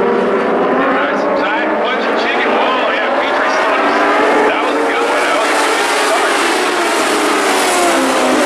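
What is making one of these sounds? Engines rev up and down as cars pass close by.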